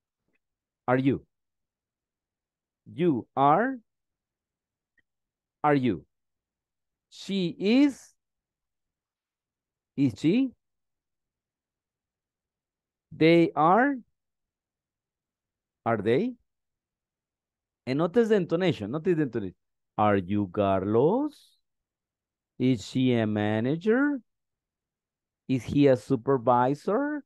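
A man speaks slowly and clearly over an online call, in short phrases with pauses.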